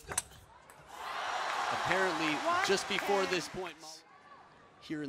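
A crowd cheers and applauds in an arena.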